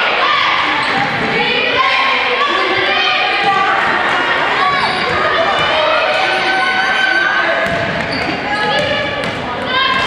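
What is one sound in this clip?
Young women shout and call out across an echoing gym.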